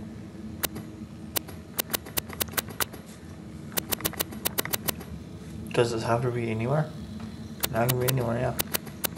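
Short menu clicks tick quickly as options are scrolled through.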